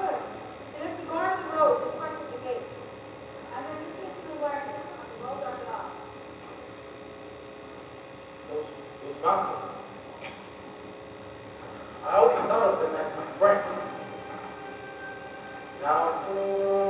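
Young performers speak lines on a stage, heard from the audience.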